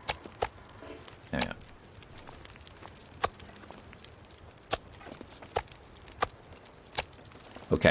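Chunks of meat drop onto snow with soft thuds.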